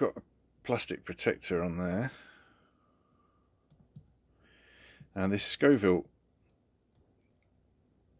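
A watch crown is wound with soft, quick ratchet clicks.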